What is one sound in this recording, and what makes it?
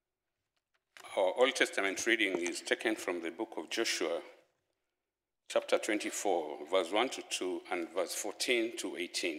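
A man reads aloud slowly through a microphone.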